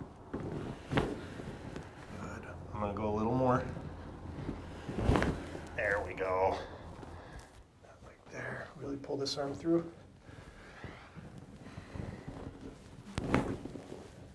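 A padded table drops with a sharp thump.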